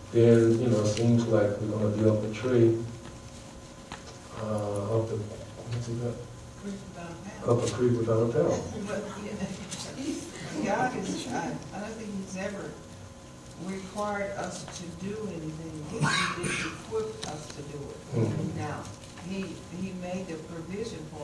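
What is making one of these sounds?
An elderly man preaches with feeling in a large echoing hall.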